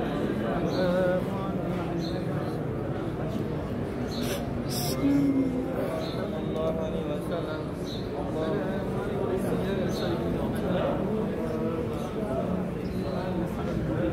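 Many men's voices murmur and talk all around in a large echoing hall.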